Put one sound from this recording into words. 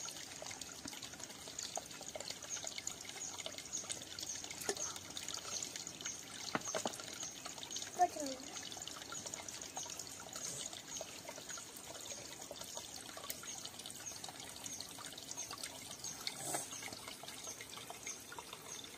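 A stream trickles gently over rocks.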